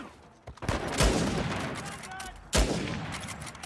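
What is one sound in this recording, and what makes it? Loud rifle shots ring out and echo.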